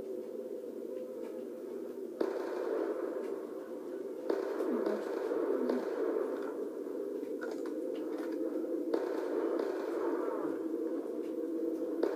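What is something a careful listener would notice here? Gunfire and explosions from a video game play through a small speaker.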